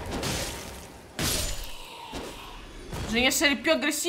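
Metal weapons clash and strike.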